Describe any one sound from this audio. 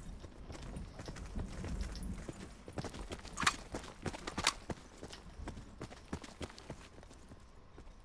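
Footsteps scuff over rocky ground.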